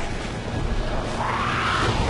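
Battle noise rumbles and clashes in the distance.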